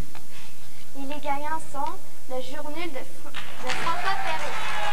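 A young girl reads out slowly into a microphone.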